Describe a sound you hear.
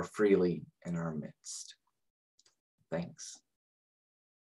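A man speaks warmly and close to a microphone.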